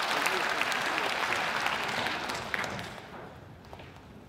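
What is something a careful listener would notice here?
An audience applauds in a large echoing hall, and the clapping fades away.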